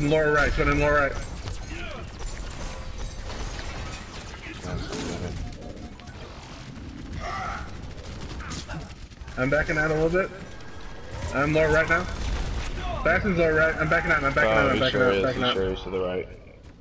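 Game weapons fire in quick bursts with heavy thuds.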